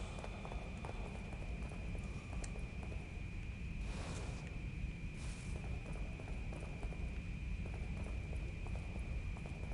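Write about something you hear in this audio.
Footsteps tread slowly on a stone floor.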